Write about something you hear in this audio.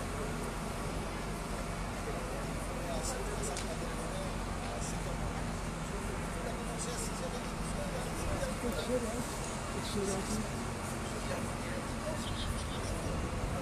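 A fire engine idles with a steady low rumble.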